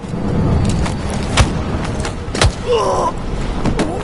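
Heavy blows thud as one man knocks out another.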